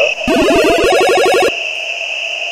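A short chiptune victory jingle plays with bright beeping notes.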